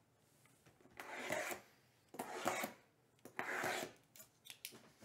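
Cardboard boxes slide and shuffle on a table.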